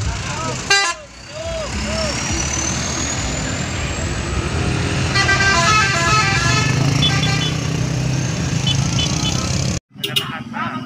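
A truck engine rumbles as the truck drives slowly uphill.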